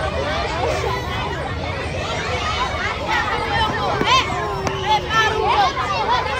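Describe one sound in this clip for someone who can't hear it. A crowd of children chatter and shout in the distance outdoors.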